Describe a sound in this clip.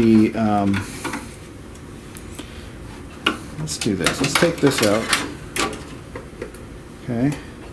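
Small metal parts click and rattle as a screwdriver works inside a computer case.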